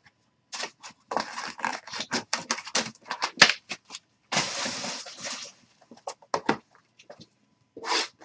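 Cardboard scrapes and taps as a box is handled up close.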